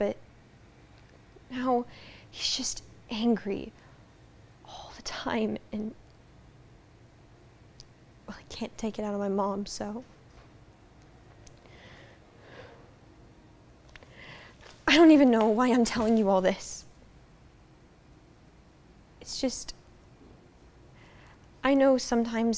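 A young girl speaks with emotion in short, broken phrases, with pauses between them.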